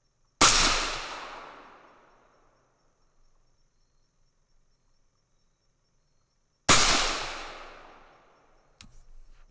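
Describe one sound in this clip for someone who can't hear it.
A rifle fires two loud shots outdoors, each echoing away.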